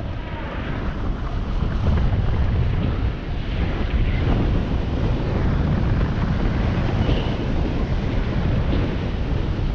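Wind rumbles loudly past the skier.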